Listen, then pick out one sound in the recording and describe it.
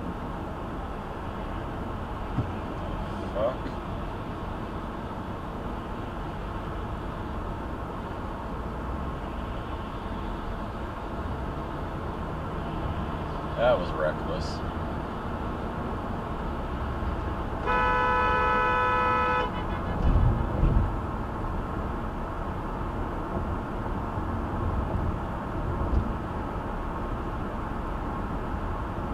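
Tyres hum steadily on a road from inside a moving car.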